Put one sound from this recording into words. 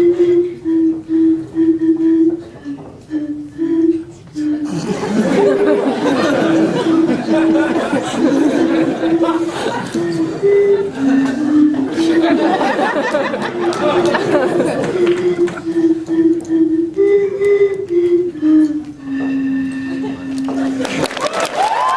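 A group of young men and women sings together in an echoing hall.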